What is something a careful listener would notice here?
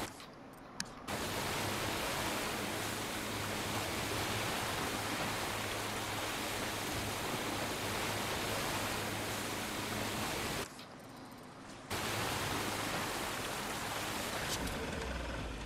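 A motorboat engine drones as the boat speeds through water.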